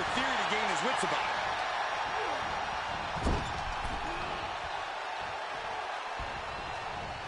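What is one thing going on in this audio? A large crowd cheers loudly throughout.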